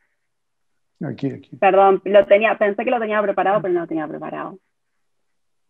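An older man speaks over an online call.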